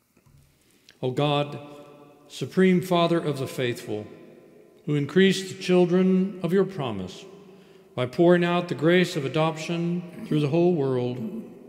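A woman sings slowly into a microphone in a large echoing room.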